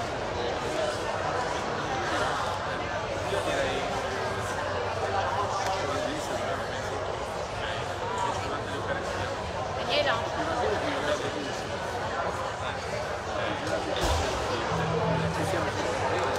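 An elderly woman talks calmly nearby in a large echoing hall.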